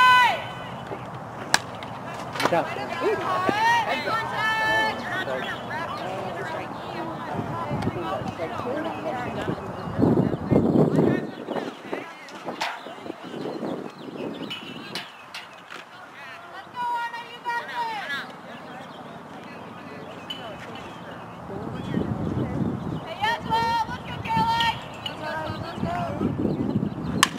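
Young women shout and chant loudly in the open air.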